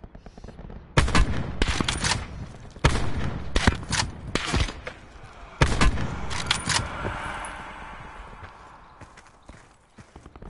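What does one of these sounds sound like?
Sniper rifle shots boom loudly, each followed by a long echoing rumble.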